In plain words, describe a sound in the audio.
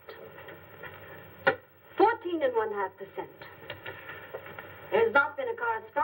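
A woman speaks clearly and calmly, close by.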